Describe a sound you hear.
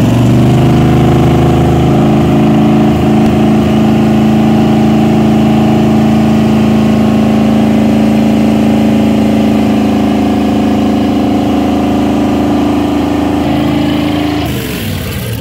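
Water sprays and splashes from an exhaust pipe.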